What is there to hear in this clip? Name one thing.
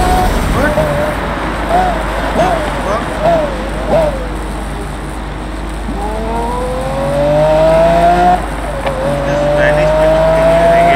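A sports car engine revs up and down between gear changes.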